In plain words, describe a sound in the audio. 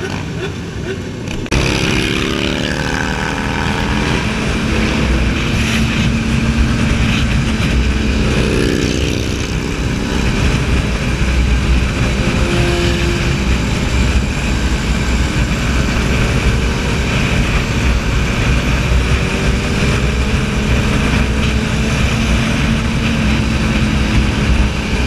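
A motorcycle engine roars loudly up close, rising and falling in pitch.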